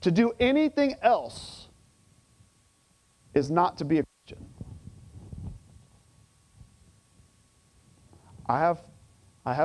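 A middle-aged man speaks with animation through a microphone, in short bursts with pauses.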